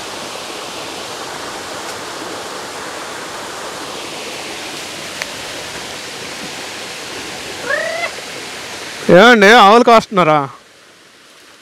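Shallow water trickles gently over stones.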